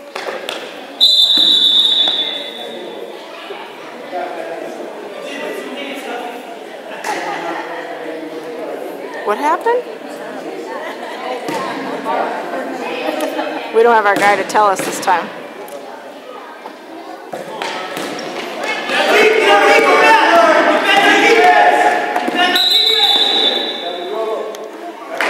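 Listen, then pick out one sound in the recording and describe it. A referee's whistle blows shrilly in a large echoing gym.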